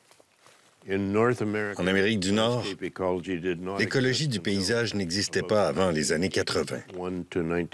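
An elderly man speaks calmly and closely through a microphone.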